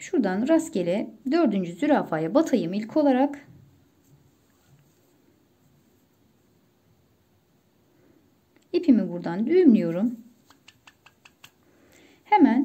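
A needle and thread rustle softly as stitches are pulled tight.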